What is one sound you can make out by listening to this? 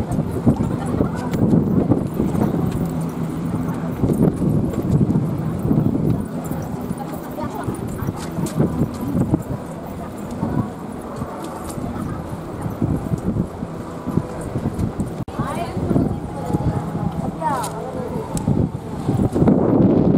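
Wind buffets loudly outdoors.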